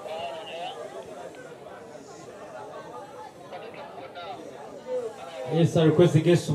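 A crowd of young men chatters outdoors.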